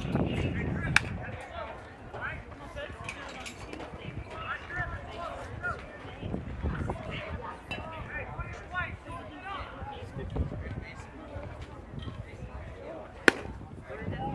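A softball smacks sharply into a catcher's mitt.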